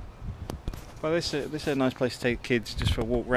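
A man talks close to the microphone, outdoors.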